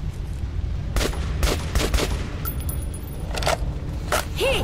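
A rifle fires several sharp shots in a tunnel.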